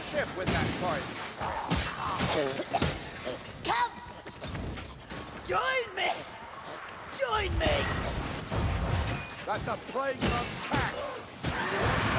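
Creatures screech and growl.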